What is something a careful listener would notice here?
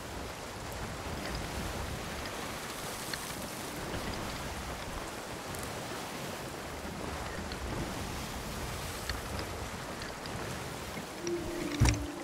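Rough waves crash and rush against a ship's hull.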